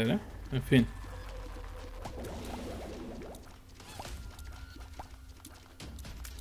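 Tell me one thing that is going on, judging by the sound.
Small cartoonish shots pop and splat in quick succession.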